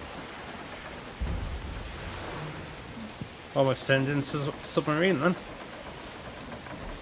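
Strong wind blows steadily over the open sea.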